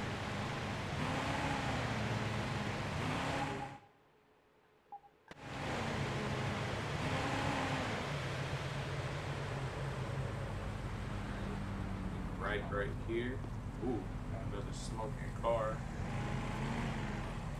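A car engine hums steadily as a car drives along a street.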